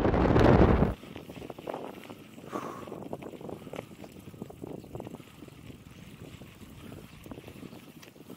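Mountain bike tyres roll and crunch over a dirt track.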